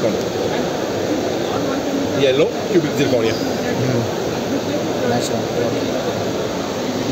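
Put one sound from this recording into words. Men talk in the background over a murmur of a busy crowd.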